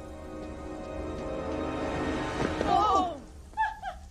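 A young man exclaims with excitement.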